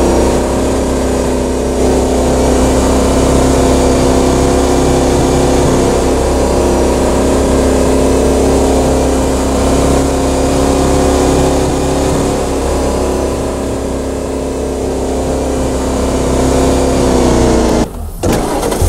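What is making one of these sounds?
A small engine hums steadily, then cuts off.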